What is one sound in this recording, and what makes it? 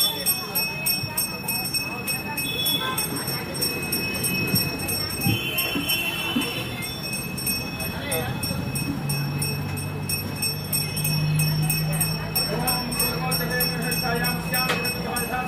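A small hand bell rings quickly and steadily.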